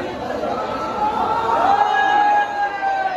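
A young man shouts loudly above the crowd.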